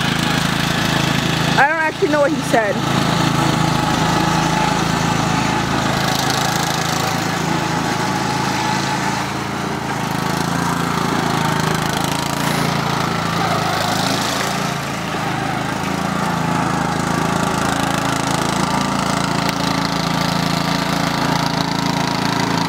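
A racing riding lawn mower engine drones as the mower drives around.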